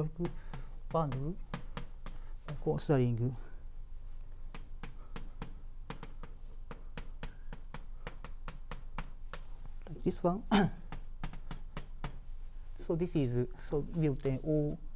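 Chalk taps and scratches quickly on a blackboard.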